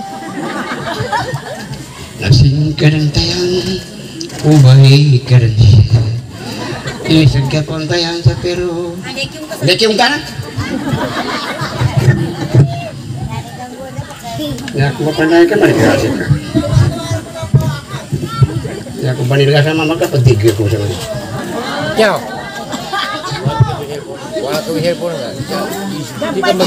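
A man sings into a microphone, heard through a loudspeaker.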